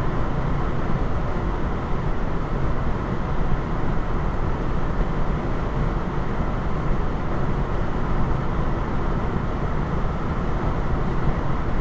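Tyres roar steadily on the road from inside a moving car.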